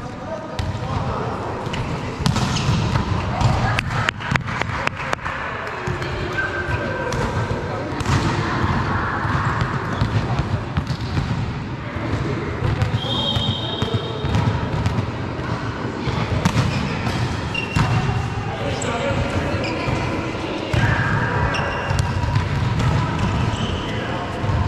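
A volleyball thumps as it is hit.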